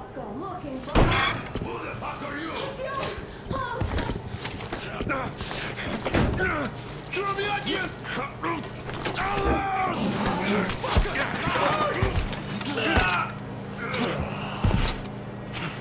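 A struggle thuds and scuffles with sharp knocks.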